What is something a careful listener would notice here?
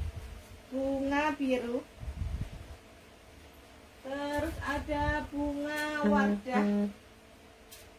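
A young woman speaks brightly and with animation close by.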